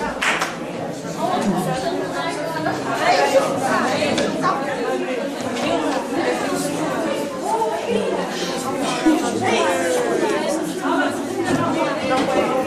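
A crowd of teenagers chatters loudly close by.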